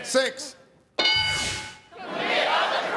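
An electronic chime rings out brightly.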